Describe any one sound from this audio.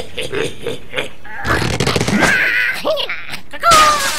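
A cartoon bird squawks as it flies through the air.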